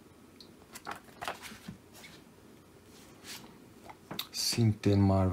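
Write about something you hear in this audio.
Paper rustles and slides as comic books are handled.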